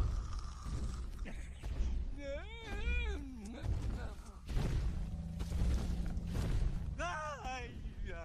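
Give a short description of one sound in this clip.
A young boy shouts excitedly.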